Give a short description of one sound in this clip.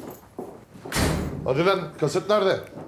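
A man speaks gruffly, close by.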